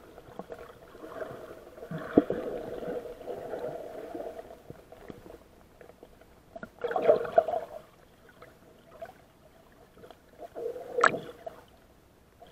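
A swimmer splashes and kicks through the water nearby.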